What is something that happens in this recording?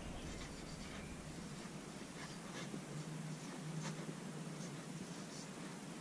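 A marker squeaks faintly as it writes.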